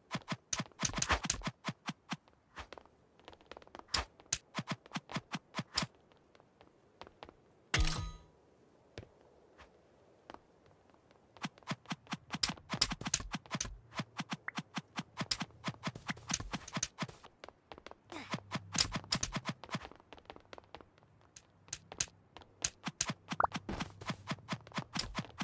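Hits land with sharp clicks in a video game fight.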